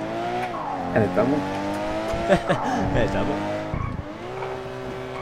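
A car engine hums steadily and changes pitch as the car drives.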